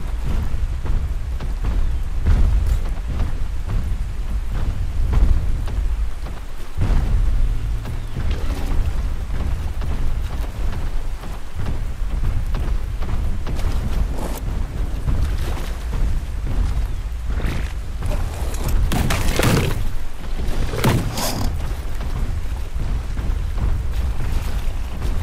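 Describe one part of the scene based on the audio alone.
Water rushes and splashes over rocks.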